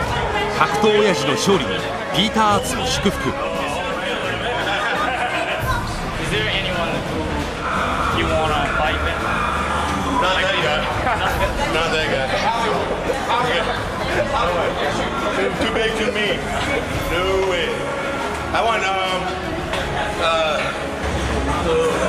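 Several men talk and laugh in the background.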